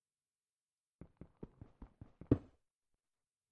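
A pickaxe taps repeatedly on stone.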